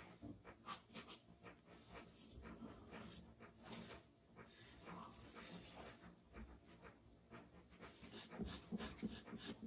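A pencil scratches and scrapes across paper up close.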